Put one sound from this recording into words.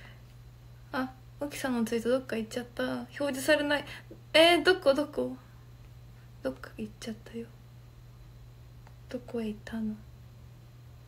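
A young woman speaks softly and casually close to a microphone.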